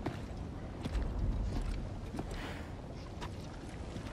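Heavy footsteps crunch on gravel.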